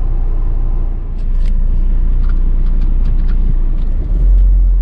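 A car engine hums low and steady as the car drives.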